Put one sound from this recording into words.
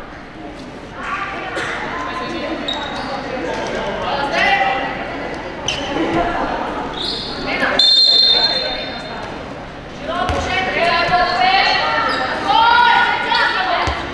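Girls shout and call out to each other in a large echoing hall.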